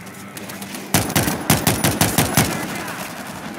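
Gunshots fire in a rapid burst, echoing in a large hall.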